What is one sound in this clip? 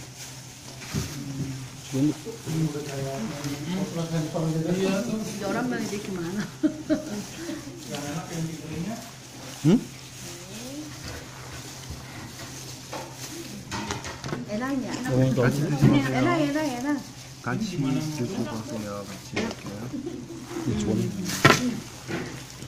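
A woman talks nearby in a lively way.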